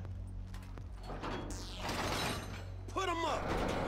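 A heavy metal sliding door rumbles open.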